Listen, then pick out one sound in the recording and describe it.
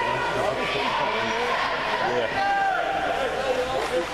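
Young players shout and cheer as a huddle breaks.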